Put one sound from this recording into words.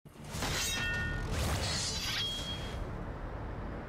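Metal blades clash with a sharp ringing clang that slowly fades.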